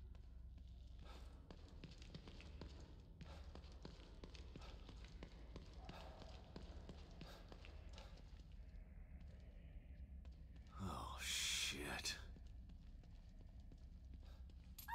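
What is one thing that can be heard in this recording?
Footsteps scuff slowly over a gritty stone floor.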